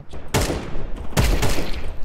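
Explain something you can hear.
A rifle fires loud bursts.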